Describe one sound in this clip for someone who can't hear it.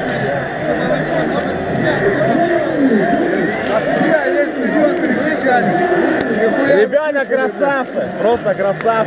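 Men talk and shout excitedly close by.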